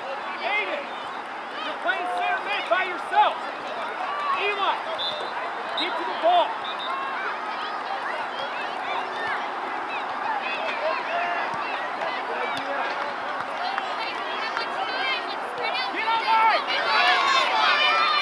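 A crowd of spectators cheers and shouts outdoors, growing louder near the end.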